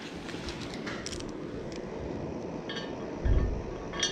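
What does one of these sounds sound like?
Small metal parts clink and tap close by.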